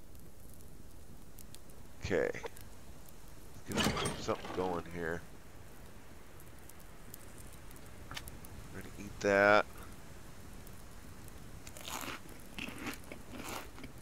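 A fire crackles softly in a stove.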